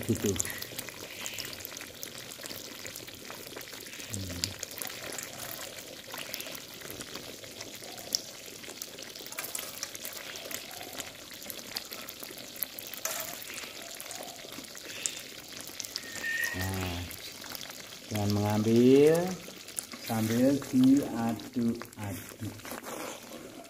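A metal spoon scrapes and taps against a metal pan.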